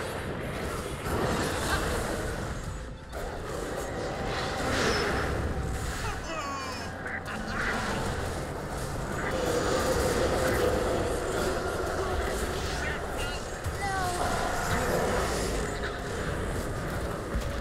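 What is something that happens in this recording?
Magic spells crackle and blast in a game battle.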